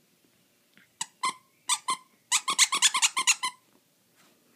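A squeaky toy squeaks in quick bursts.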